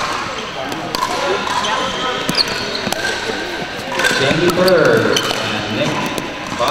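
Players call out and chat in a large echoing hall.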